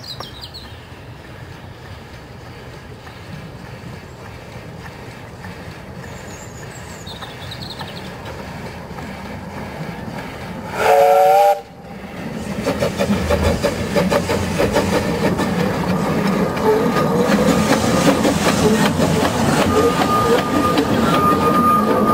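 A steam locomotive chuffs as it approaches and passes close by.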